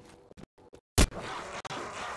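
A gunshot fires once, sharp and loud.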